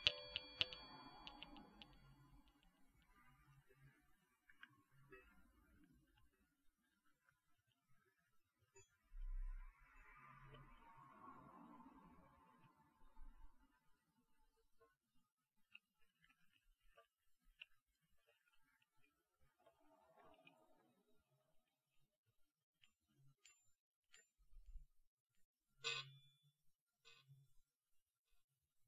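Metal balls click and tap against each other close to a microphone.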